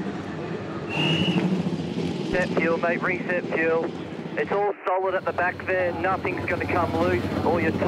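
A race car engine rumbles as the car rolls slowly.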